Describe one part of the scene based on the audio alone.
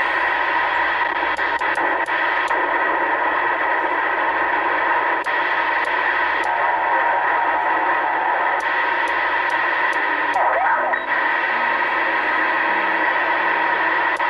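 Radio static hisses steadily from a speaker.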